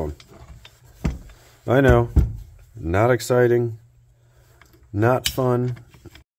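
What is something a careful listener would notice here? A metal lock mechanism clicks as it is handled.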